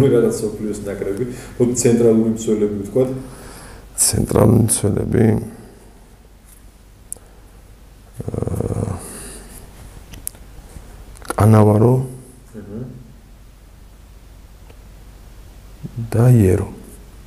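A young man speaks calmly and haltingly into a nearby microphone, with long pauses.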